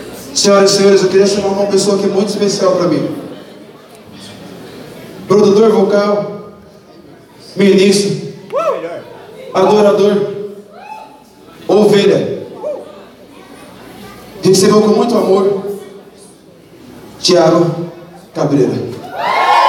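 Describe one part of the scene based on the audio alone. A man sings loudly into a microphone through loudspeakers in bursts.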